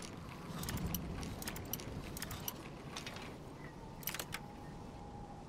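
A metal lock pick clicks and scrapes inside a lock.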